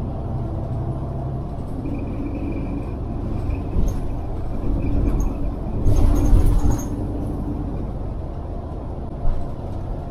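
Cars and trucks rumble past steadily on a nearby road.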